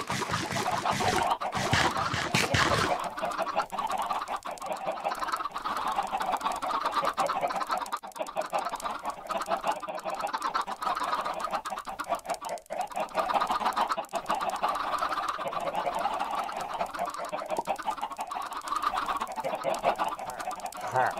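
Many chickens cluck and squawk steadily all around.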